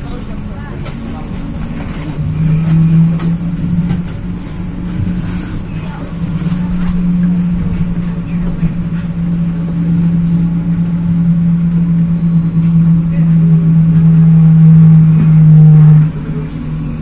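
A vehicle's engine hums low and steady as it drives, then drops away.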